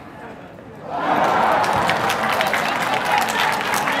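A crowd cheers loudly in a large open stadium.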